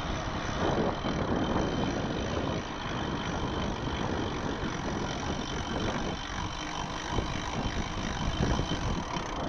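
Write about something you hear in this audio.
Wind rushes loudly past a moving bicycle.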